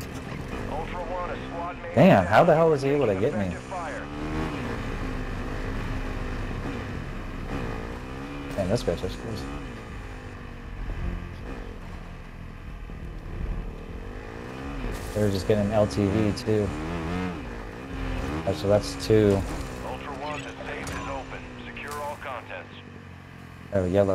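A motorbike engine drones steadily, rising and falling in pitch as it speeds along.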